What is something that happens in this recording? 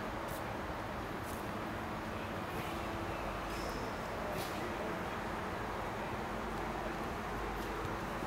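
Footsteps shuffle on a hard floor in a large echoing space.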